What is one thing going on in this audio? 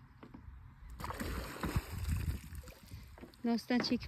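Water splashes loudly.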